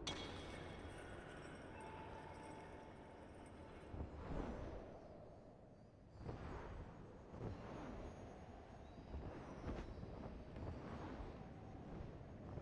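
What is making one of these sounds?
Wind rushes past in soft, swelling gusts.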